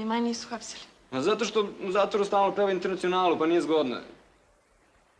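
A young woman speaks softly and emotionally, close by.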